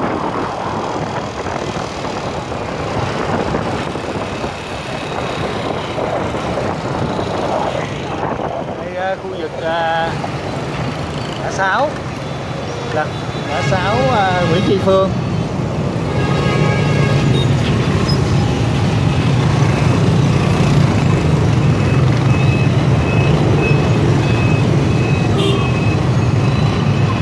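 Motorbike engines hum and buzz steadily all around in busy traffic.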